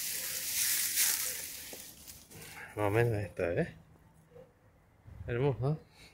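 Leafy branches rustle as they are brushed aside.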